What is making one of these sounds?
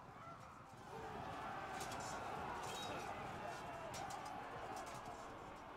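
Soldiers clash in a noisy battle.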